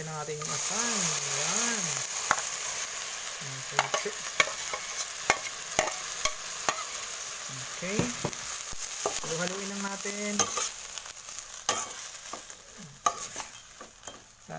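Food sizzles and crackles loudly in a hot pan.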